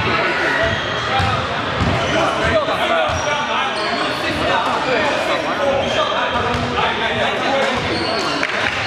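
Several young men talk and call out to each other in a large echoing hall.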